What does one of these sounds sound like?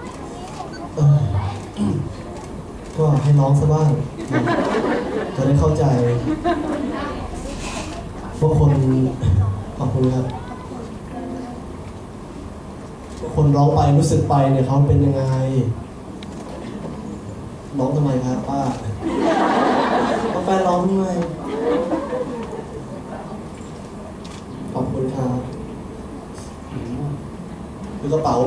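A young man talks cheerfully into a microphone over loudspeakers.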